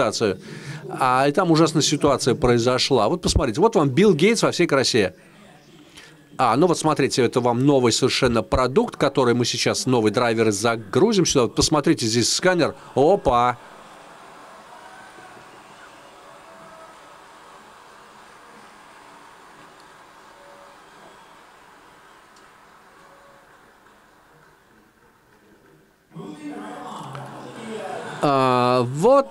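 A man speaks calmly to an audience through a microphone in a large room.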